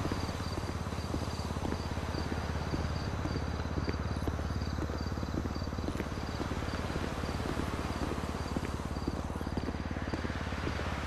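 Footsteps tap steadily on a hard walkway.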